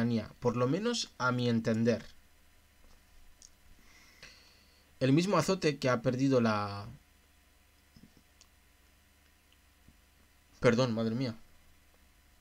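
A man speaks calmly and close to a microphone, in short bursts with pauses.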